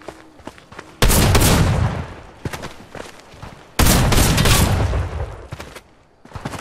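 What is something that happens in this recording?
Gunfire bursts in a video game.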